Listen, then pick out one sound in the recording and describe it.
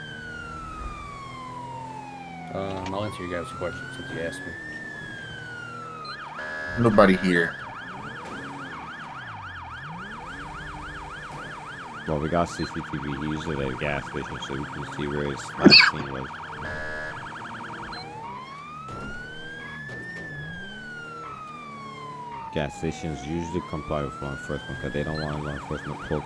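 A police siren wails, rising and falling slowly.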